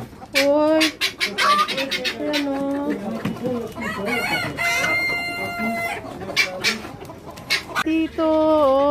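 Roosters crow loudly nearby.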